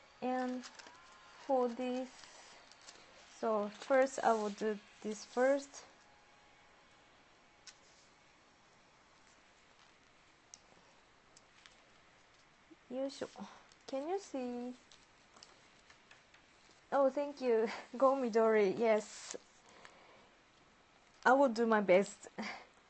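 A woman speaks calmly and close through a microphone, in short bursts.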